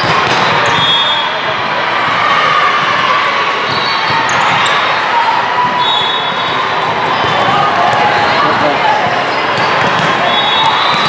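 Players' shoes squeak sharply on a hard court in a large echoing hall.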